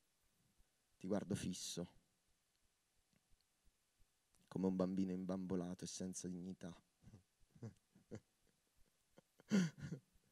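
A man speaks slowly and expressively into a microphone, with long pauses.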